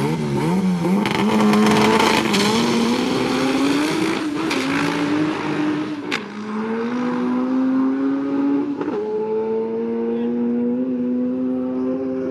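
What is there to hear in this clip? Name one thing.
A car launches and accelerates hard away into the distance, shifting gears.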